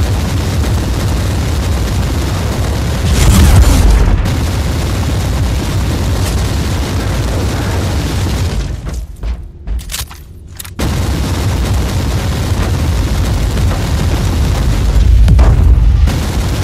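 Heavy weapons fire and explosions boom in a battle.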